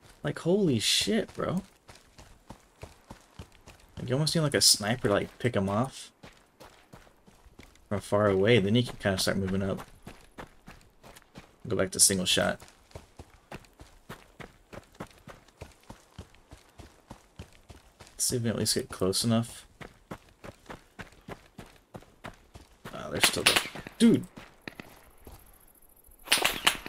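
Footsteps crunch steadily over grass and stones.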